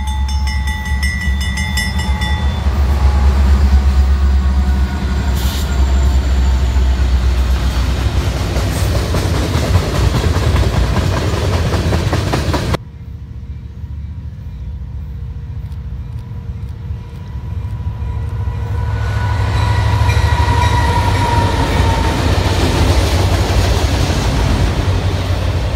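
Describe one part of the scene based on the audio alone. Diesel locomotives rumble past close by.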